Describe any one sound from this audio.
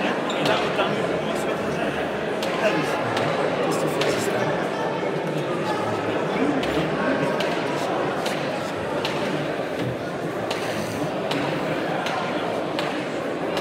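Men talk with each other nearby.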